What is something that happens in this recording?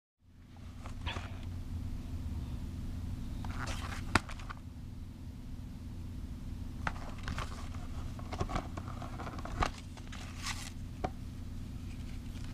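A cardboard tape box rustles and taps.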